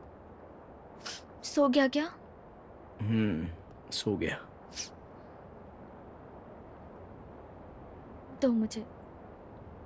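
A young woman speaks softly on a phone.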